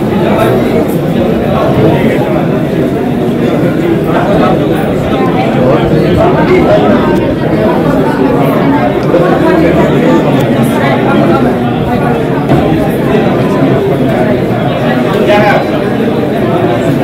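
Several men and women talk at once in a crowded room.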